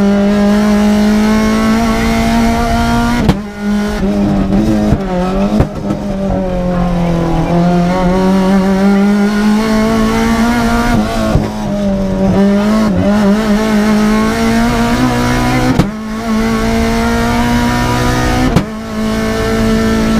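A rally car engine roars loudly from inside the cabin, its pitch rising and falling with gear changes.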